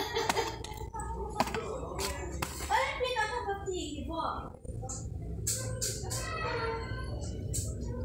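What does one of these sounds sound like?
A plastic toy package rattles and crinkles as it is lifted from a shelf hook.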